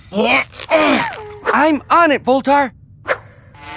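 A small robot chatters in a high, squeaky electronic voice.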